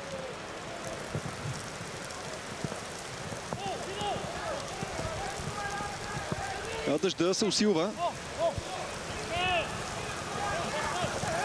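A stadium crowd murmurs steadily outdoors.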